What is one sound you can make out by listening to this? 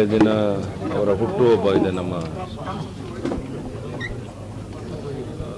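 An elderly man speaks into microphones, close by.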